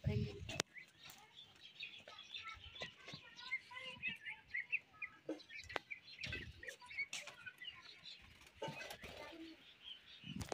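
Small birds chirp and twitter nearby.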